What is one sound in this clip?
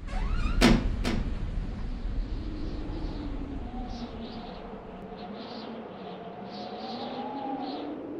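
Wind blows softly through an open window.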